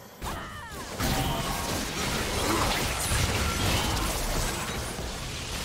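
Video game spells blast and crackle during a battle.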